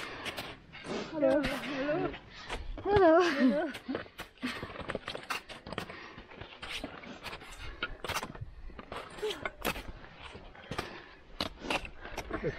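Crampons crunch and scrape on hard snow underfoot.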